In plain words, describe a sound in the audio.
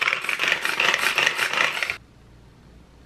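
A small electric food chopper whirs loudly.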